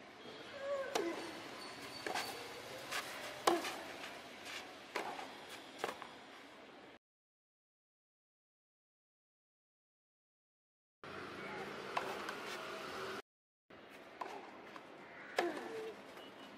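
A tennis ball is struck back and forth with rackets, with sharp pops.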